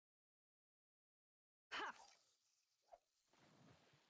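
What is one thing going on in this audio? A fishing lure splashes into water.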